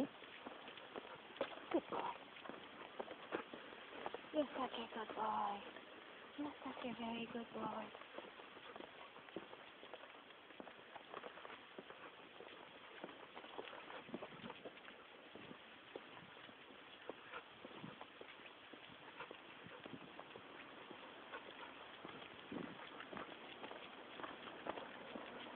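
A large dog pants.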